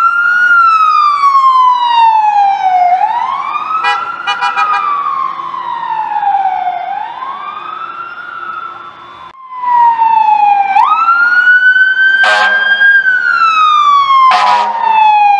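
A siren wails loudly, sliding slowly up and down.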